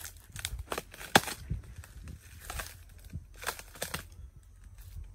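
Palm leaves rustle in the breeze.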